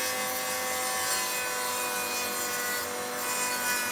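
A wooden strip slides and scrapes along a metal guide.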